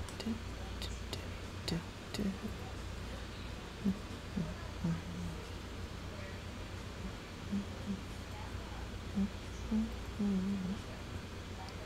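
A young woman talks quietly into a headset microphone, in short bursts.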